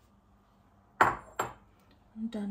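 A ceramic bowl clinks against a hard countertop.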